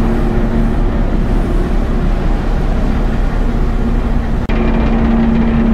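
A boat's engine drones steadily.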